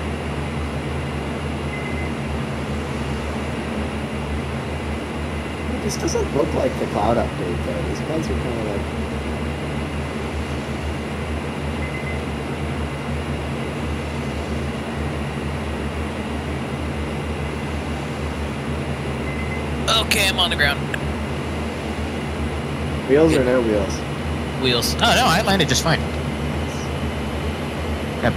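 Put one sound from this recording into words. A propeller engine drones steadily inside a cockpit.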